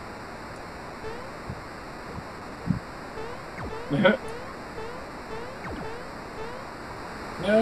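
Soft video game blips chirp in a quick, even rhythm.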